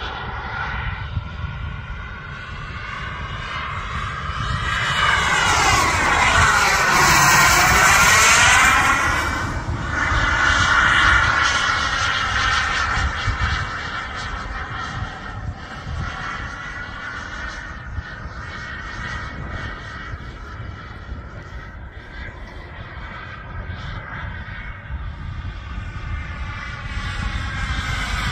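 A radio-controlled model jet's electric ducted fan whines overhead, rising and falling in pitch as it passes close by.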